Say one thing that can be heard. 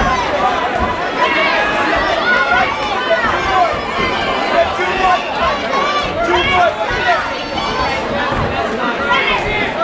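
Boxing gloves thud against bodies.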